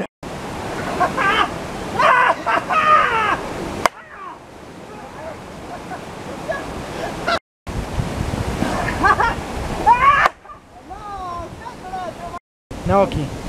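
Young men shout and laugh outdoors.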